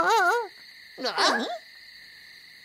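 A squeaky cartoon voice cries out in alarm.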